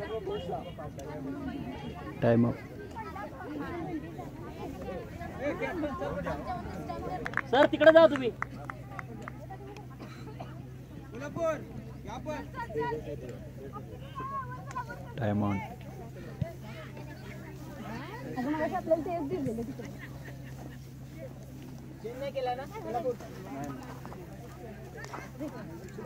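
Young women talk and call out nearby, outdoors.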